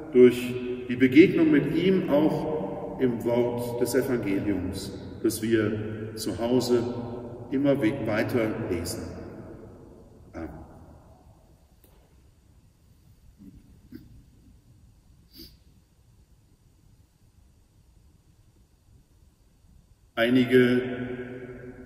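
A middle-aged man speaks calmly and slowly in an echoing hall.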